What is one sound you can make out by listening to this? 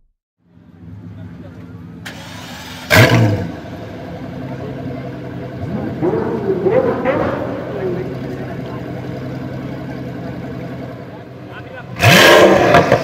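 A supercar engine idles with a deep, steady rumble.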